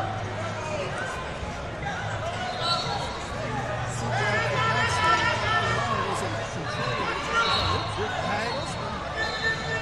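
A crowd of many voices chatters and calls out in a large echoing hall.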